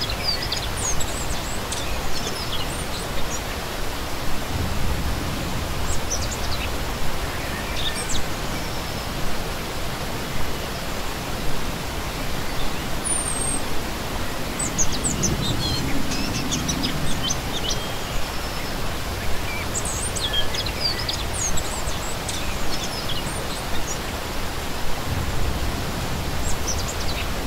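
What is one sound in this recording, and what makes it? A shallow stream rushes and splashes steadily over rocks.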